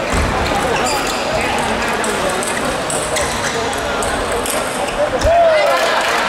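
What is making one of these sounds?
A table tennis ball clicks back and forth on paddles and the table.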